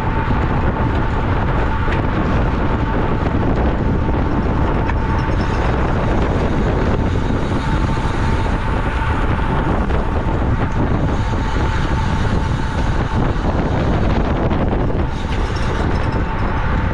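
Wind roars steadily past as a bicycle speeds along.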